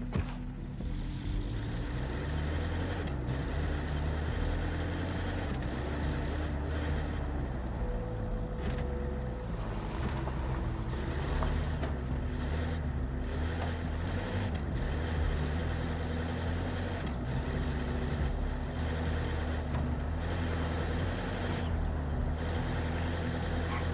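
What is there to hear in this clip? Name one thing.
A heavy vehicle's engine rumbles steadily as it drives.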